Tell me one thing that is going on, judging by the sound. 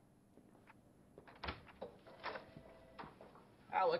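A door latch clicks and a door swings open.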